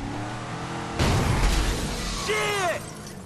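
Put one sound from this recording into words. A car crashes through a shop window with breaking glass.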